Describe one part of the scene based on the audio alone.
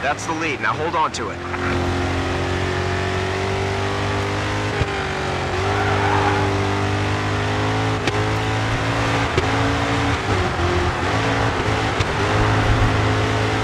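A car engine roars at high revs throughout.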